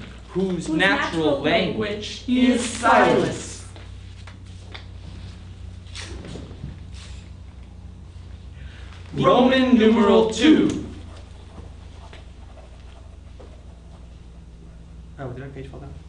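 A man reads aloud clearly, close by.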